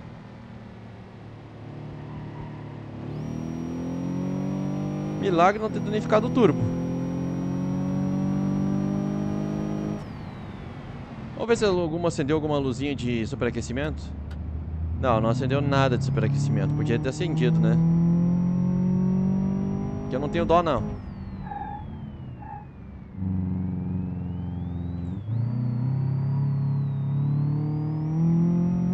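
A car engine revs up and drops between gear shifts.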